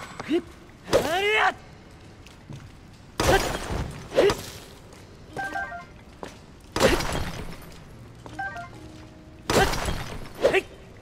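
A weapon strikes crystal rock with sharp, ringing crashes.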